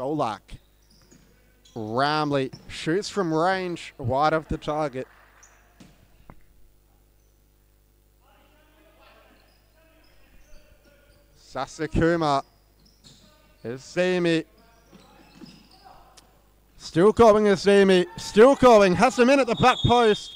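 A ball thumps as it is kicked across a hard indoor court.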